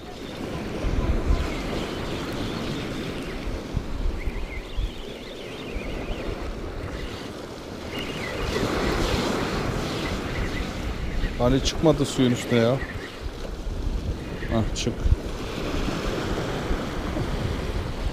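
Waves crash and wash against rocks below.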